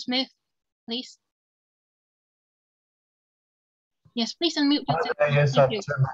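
A young woman speaks calmly and close by, as if over an online call.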